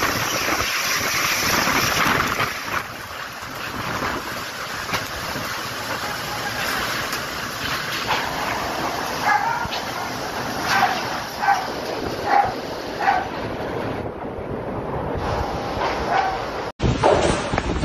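Rain pours down and splashes on the ground.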